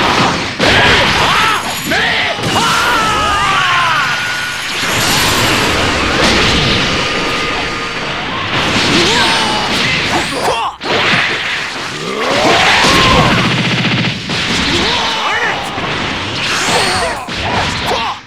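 Punches and kicks land with sharp impacts.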